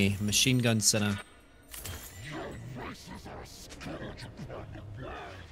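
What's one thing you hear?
A man talks with animation through a close microphone.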